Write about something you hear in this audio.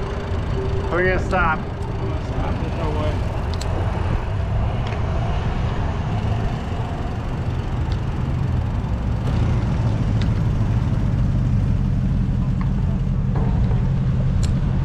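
Traffic rumbles along a wide road.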